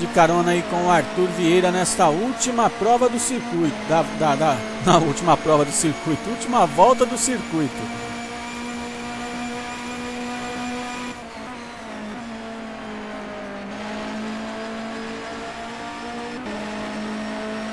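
A racing car engine hums steadily at high revs.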